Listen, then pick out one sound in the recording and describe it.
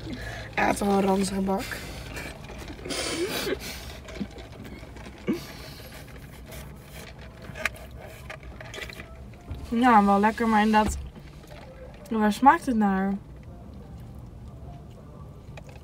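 A young woman slurps a drink through a straw.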